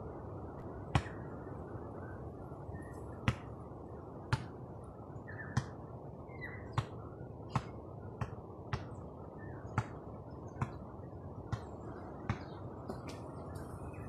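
A basketball bounces on hard pavement.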